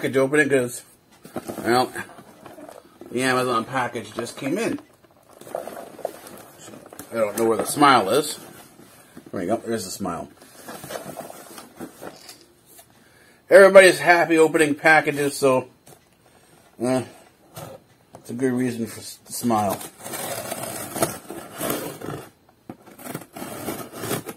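A middle-aged man talks calmly and close to a microphone.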